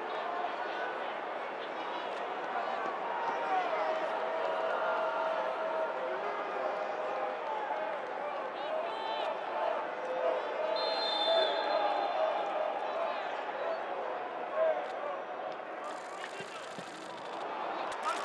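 Players shout to each other in an open, echoing stadium.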